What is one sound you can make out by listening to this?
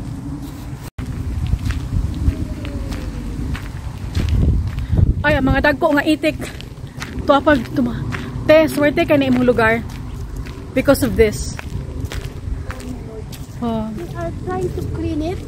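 Footsteps tread on a wet path.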